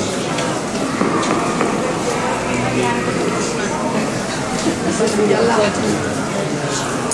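A dense crowd murmurs and chatters in a large echoing hall.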